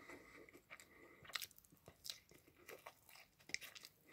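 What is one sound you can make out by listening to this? A young man bites into crunchy food.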